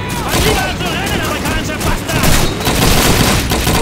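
Gunfire crackles in bursts nearby.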